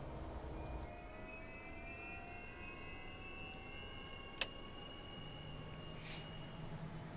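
A jet engine whines steadily.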